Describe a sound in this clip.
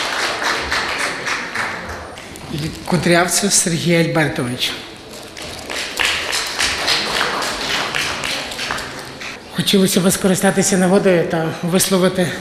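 A crowd applauds with steady clapping.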